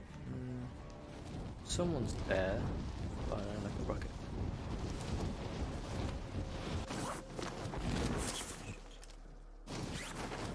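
Wind rushes loudly past a parachutist falling through the air.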